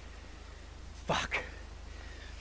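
A man swears loudly.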